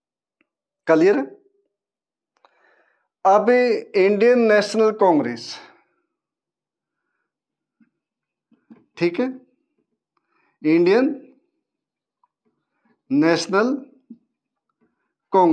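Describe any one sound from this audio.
A man speaks calmly and clearly into a close microphone, in short phrases with pauses.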